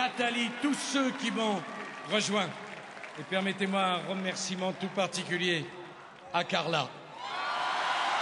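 A man speaks forcefully through a microphone.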